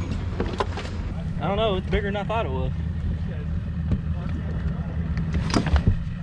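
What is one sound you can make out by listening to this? Gear clunks and rattles as a man rummages in a boat.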